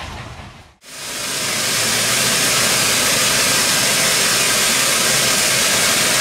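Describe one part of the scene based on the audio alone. A steam locomotive hisses as it stands.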